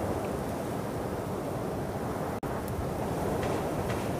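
Footsteps crunch over grass.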